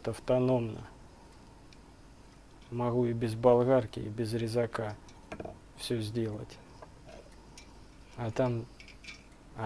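A tool scrapes and clinks against a metal pipe.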